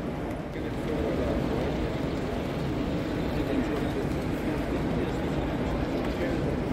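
A model passenger train hums and rattles past on its track.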